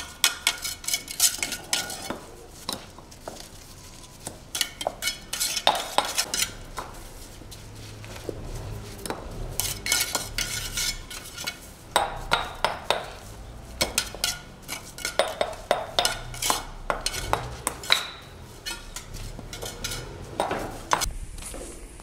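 Hammers tap and knock on paving stones in quick bursts.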